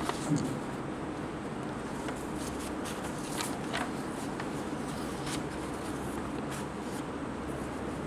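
Sheets of paper rustle and crackle close by.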